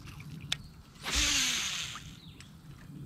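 A fishing line whizzes off a reel during a cast.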